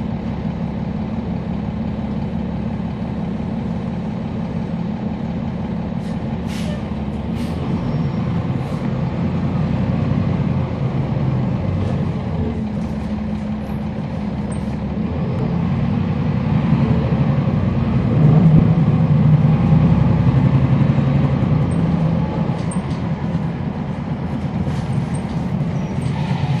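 A bus engine idles with a low, steady rumble that swells at times.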